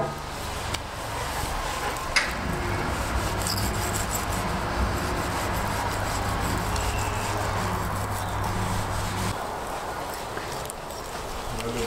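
A knife slices through raw meat.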